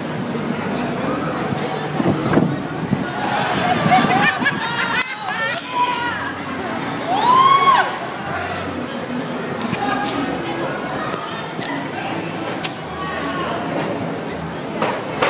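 A large outdoor crowd cheers and chatters throughout.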